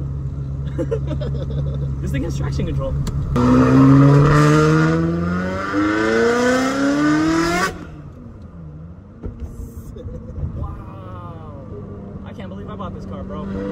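A car engine hums low inside the cabin.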